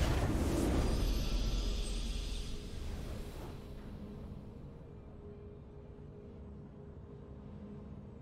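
A short triumphant game fanfare plays and fades out.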